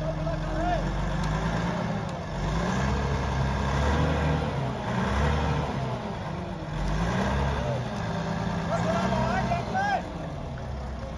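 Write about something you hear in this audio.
A crane's diesel engine rumbles steadily.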